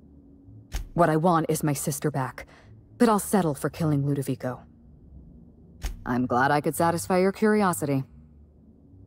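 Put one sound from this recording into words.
A young woman speaks calmly and clearly.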